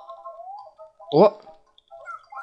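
A rising, boing-like jump sound effect rings out.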